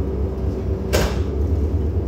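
A truck door slams shut.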